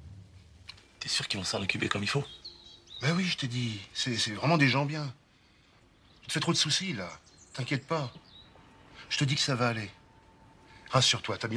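A middle-aged man talks at close range.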